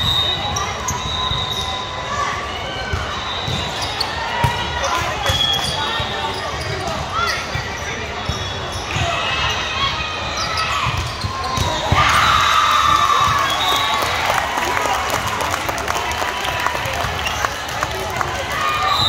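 A crowd of spectators cheers and chatters in a large echoing hall.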